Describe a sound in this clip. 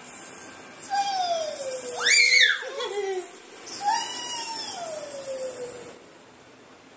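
A baby girl squeals excitedly close by.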